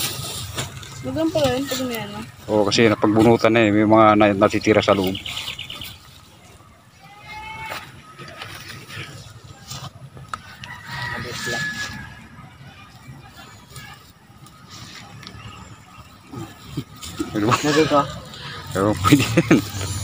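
Children talk with animation nearby.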